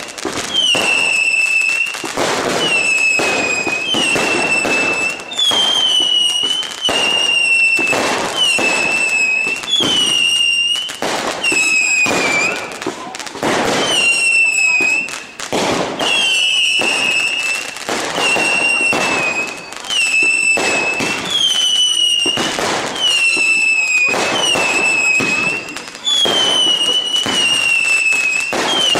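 Fireworks whistle shrilly as they shoot up.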